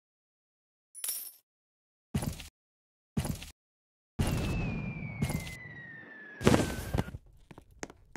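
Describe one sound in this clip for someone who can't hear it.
Short game interface sounds pop as a menu is browsed.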